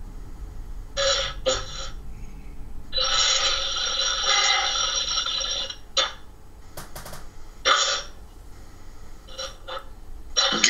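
A man speaks in bursts through an online call.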